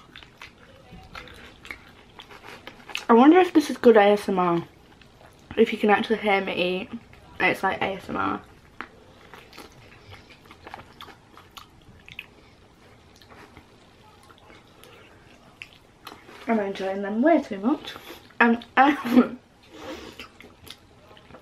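A young woman chews crunchy food with wet mouth sounds.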